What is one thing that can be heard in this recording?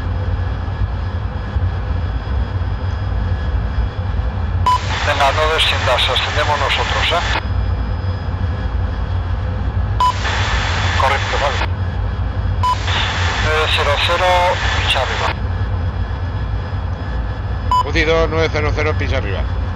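A jet engine drones steadily with a deep rumble.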